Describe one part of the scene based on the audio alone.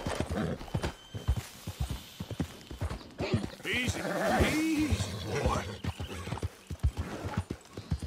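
A horse gallops, its hooves thudding on the ground at a quick pace.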